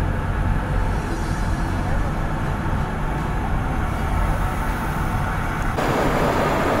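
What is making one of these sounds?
A car hums and rumbles steadily along a highway, heard from inside.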